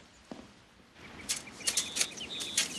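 Garden hoes scrape and chop into the soil.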